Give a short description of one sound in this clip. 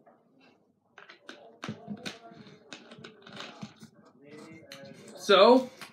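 A plastic bottle cap is twisted and crackles.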